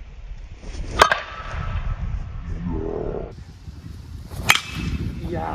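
A metal bat strikes a ball with a sharp ping.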